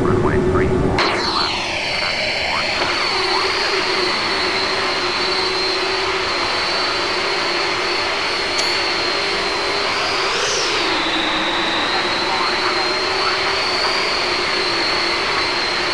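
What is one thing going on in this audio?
Jet engines whine steadily as a large airliner taxis.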